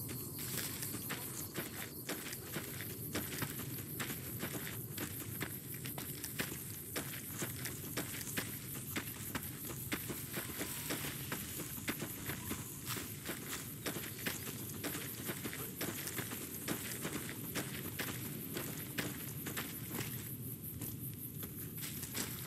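Footsteps crunch steadily on gravel and dirt.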